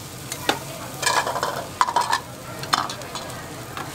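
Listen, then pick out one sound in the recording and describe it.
Ceramic bowls clink on a metal counter.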